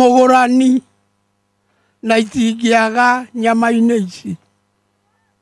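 An elderly man speaks loudly and with animation into a microphone.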